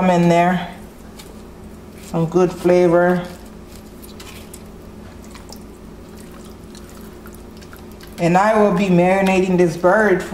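Hands rub and squish wet poultry skin.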